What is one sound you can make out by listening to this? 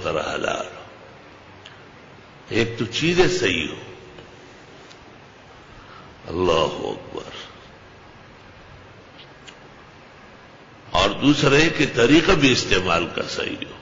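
An elderly man speaks with feeling through a microphone, in bursts with pauses.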